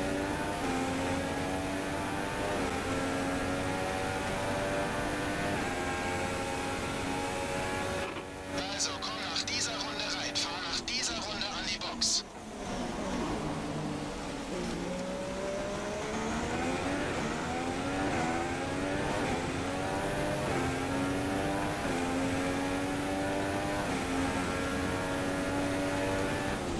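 A racing car engine screams at high revs, dropping in pitch with each gear change and rising again.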